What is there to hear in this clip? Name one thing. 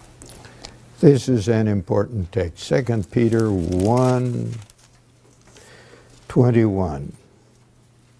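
An elderly man speaks slowly and deliberately into a microphone.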